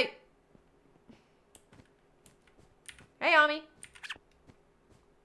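A young woman speaks briefly and with animation into a close microphone.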